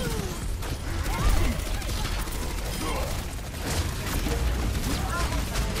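Futuristic guns fire rapid bursts of energy shots.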